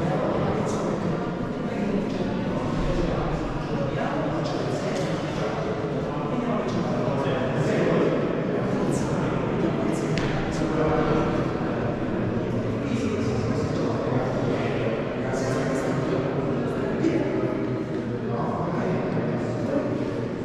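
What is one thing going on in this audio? Many young people talk and chatter at once in a large echoing hall.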